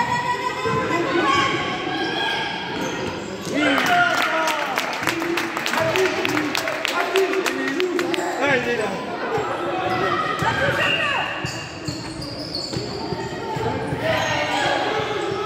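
Children shout and call out in a large echoing hall.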